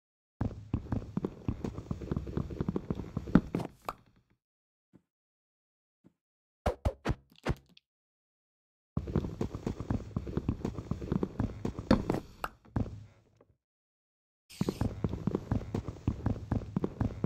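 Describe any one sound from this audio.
Rapid hollow knocks sound as wood is chopped, in quick bursts.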